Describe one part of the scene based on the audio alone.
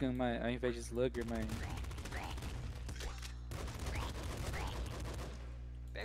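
Retro video game guns fire in quick bursts of electronic shots.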